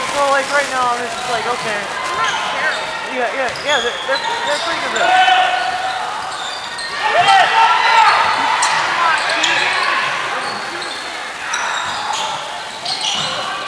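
Sneakers squeak sharply on a wooden floor in an echoing gym.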